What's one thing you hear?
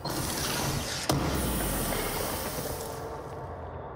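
Wooden crates smash and debris clatters across the floor.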